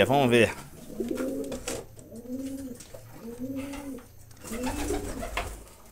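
Pigeons coo softly nearby.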